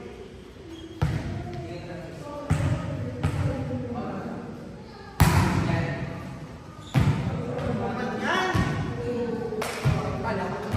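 A volleyball is struck with sharp slaps, echoing in a large hall.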